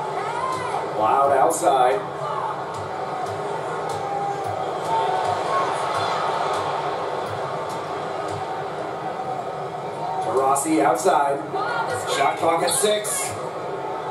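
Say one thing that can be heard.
A basketball bounces steadily on the court.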